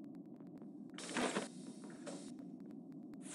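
A game's door slides open with a whoosh.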